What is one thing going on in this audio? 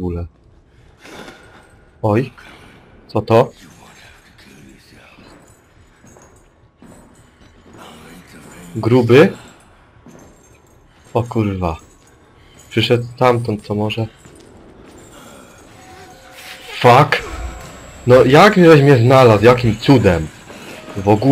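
A young man talks with animation close to a microphone, in short bursts.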